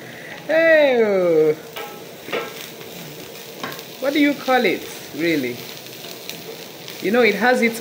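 A wooden spoon scrapes and rustles dry food in a metal pan.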